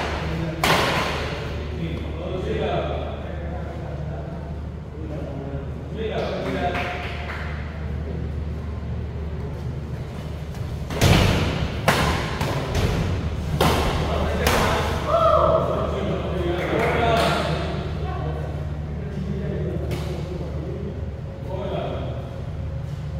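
Young men talk and call out nearby, echoing in a large hall.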